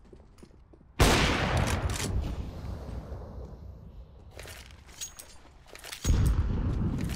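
A sniper rifle fires loud booming shots that echo away.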